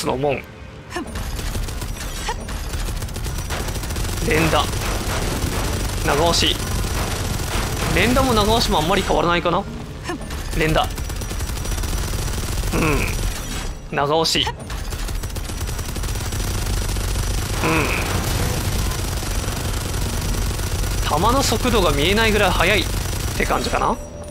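Heavy guns fire in rapid bursts with a deep rumble.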